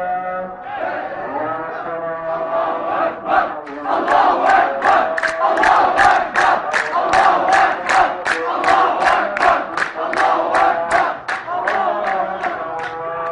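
A large crowd chants together outdoors.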